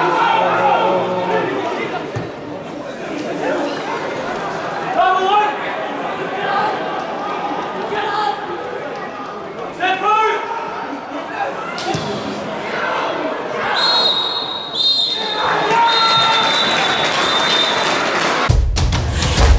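Young men shout to each other across an open, echoing pitch.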